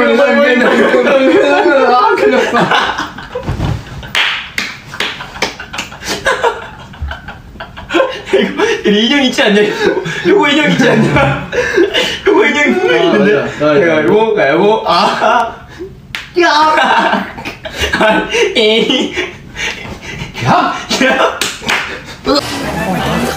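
Young men laugh and shout loudly close by.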